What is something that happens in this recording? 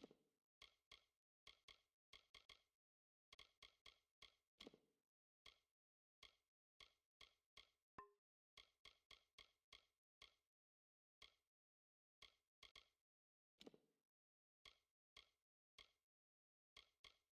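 Soft interface clicks tick repeatedly as a menu cursor moves.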